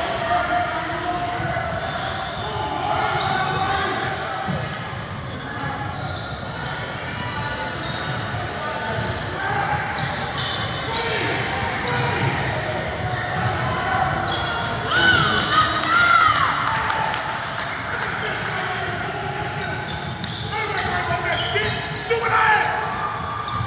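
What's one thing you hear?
Spectators chatter and call out in an echoing hall.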